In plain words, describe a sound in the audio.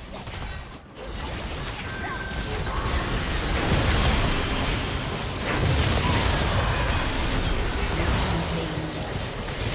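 Magic blasts crackle and burst in a busy fantasy battle.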